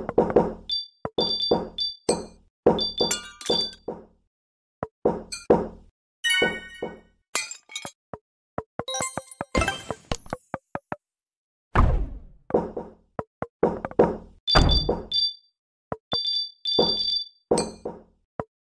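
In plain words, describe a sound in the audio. Cartoonish game sound effects pop, whoosh and chime in quick bursts.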